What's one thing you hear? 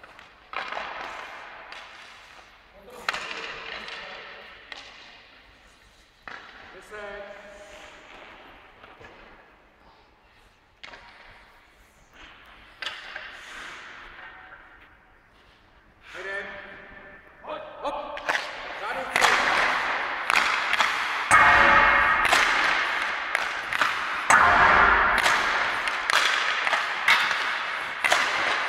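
Ice skates scrape and carve on the ice.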